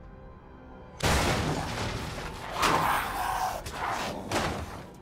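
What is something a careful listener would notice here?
A monster growls and snarls close by.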